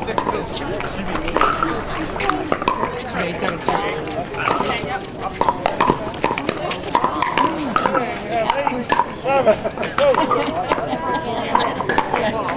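Paddles strike a plastic ball with sharp pops, back and forth.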